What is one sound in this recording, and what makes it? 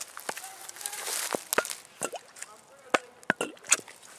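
A bottle gurgles as it fills with water.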